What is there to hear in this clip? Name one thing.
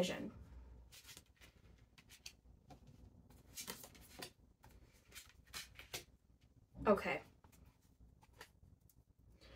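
Cards shuffle and tap softly in a woman's hands.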